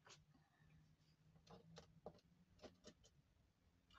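Stiff paper rustles softly as it is handled.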